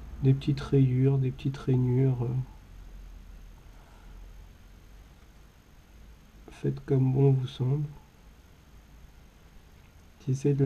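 A fine sculpting tool scrapes softly across clay.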